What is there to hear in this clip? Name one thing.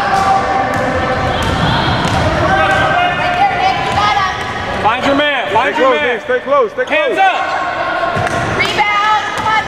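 Young players shout and call out across the court.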